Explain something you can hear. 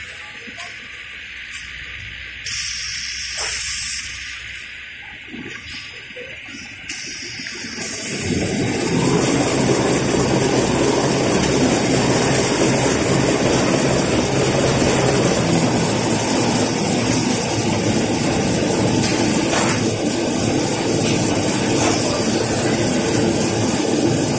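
Industrial machinery whirs, then grows to a loud, steady roar.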